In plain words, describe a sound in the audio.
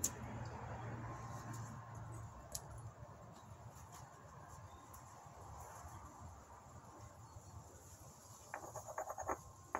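A cloth rubs against a stone.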